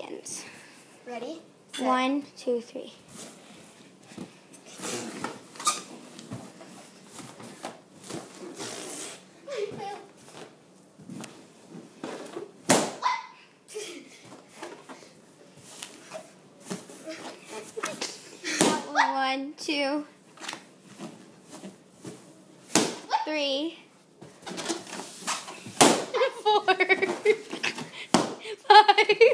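A young girl squeals and laughs excitedly close by.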